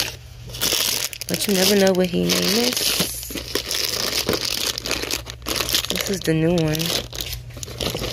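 Plastic packaging crinkles and rustles as hands rummage through it.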